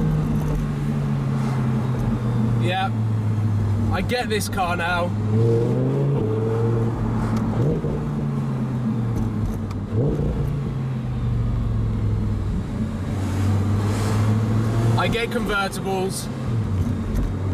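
Wind rushes past in an open car.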